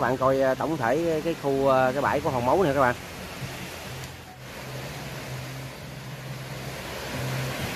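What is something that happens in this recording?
Small waves wash gently onto a beach.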